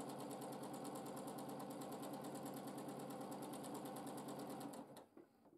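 A sewing machine runs fast with a steady, rapid ticking hum, then stops.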